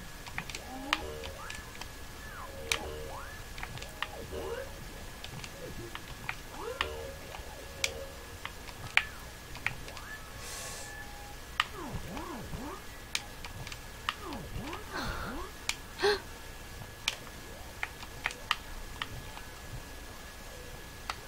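Short chirping and clicking game effects sound throughout.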